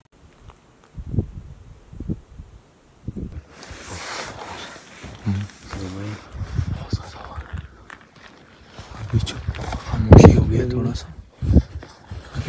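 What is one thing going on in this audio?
A man talks close by in short bursts.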